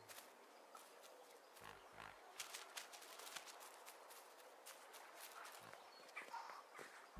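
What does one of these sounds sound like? Light footsteps patter quickly along a path.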